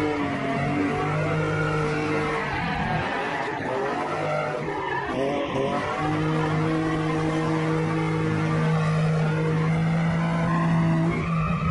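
A car engine roars loudly at high revs, dropping briefly between gear changes.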